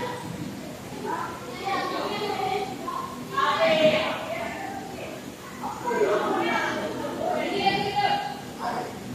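Children shout and chatter nearby in an open, echoing space.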